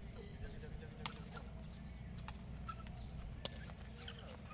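Rackets hit a shuttlecock back and forth with sharp pops.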